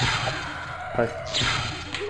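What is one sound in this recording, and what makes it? A magic lightning spell crackles and zaps.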